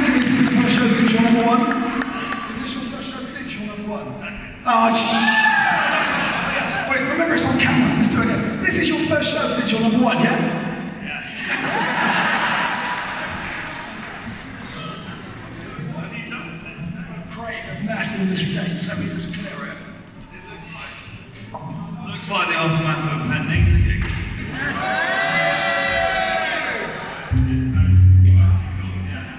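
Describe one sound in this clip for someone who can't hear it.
A man talks with animation into a microphone over loudspeakers in a large hall.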